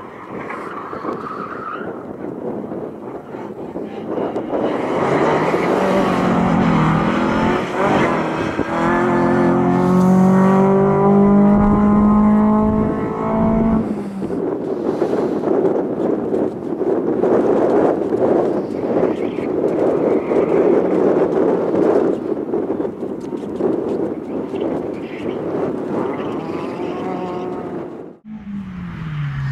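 A small car engine revs hard and roars up and down.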